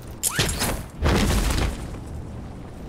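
Wind rushes loudly past during a fall.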